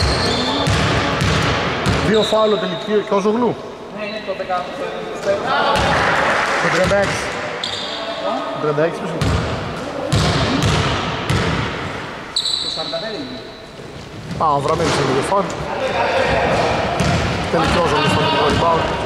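Men shout and call out across an echoing hall.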